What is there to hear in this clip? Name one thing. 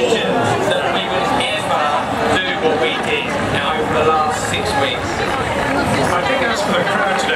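A large outdoor crowd cheers and chatters loudly.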